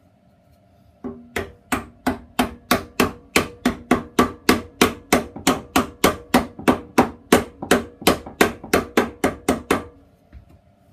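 A wooden mallet knocks rapidly and steadily on a wooden block.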